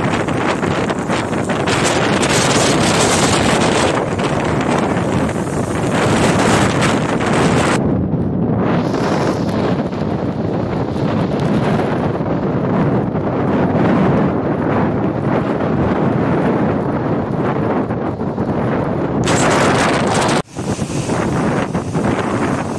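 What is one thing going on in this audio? Strong storm wind roars, gusting into the microphone.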